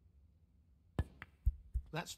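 A cue sharply strikes a snooker ball.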